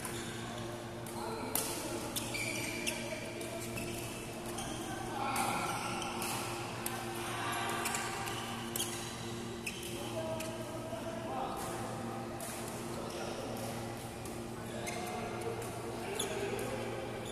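Shuttlecocks are struck with sharp taps of rackets, echoing in a large hall.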